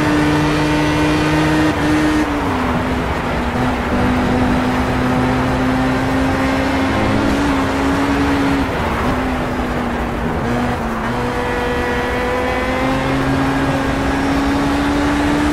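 A racing car engine roars at high revs, dropping in pitch as it slows for corners and rising again.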